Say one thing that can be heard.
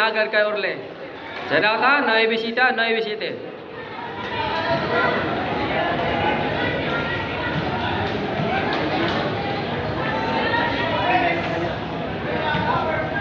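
A large crowd chatters and cheers under an echoing roof.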